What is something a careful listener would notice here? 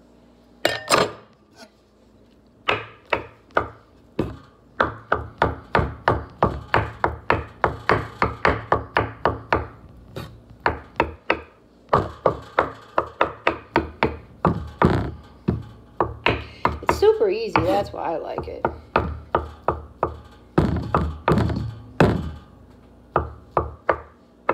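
A knife chops rapidly on a wooden cutting board.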